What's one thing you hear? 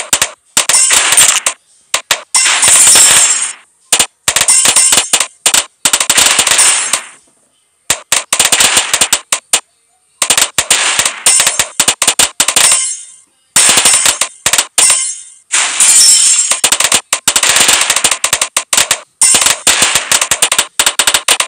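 Small balloons pop in quick bursts of clicks.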